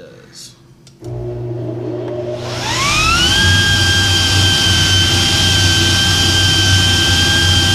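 A blower starts up with a loud hum and a whine that rises, then holds steady.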